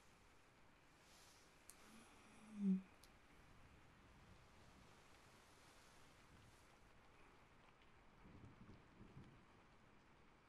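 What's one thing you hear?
Fingers brush and rustle softly close to a microphone.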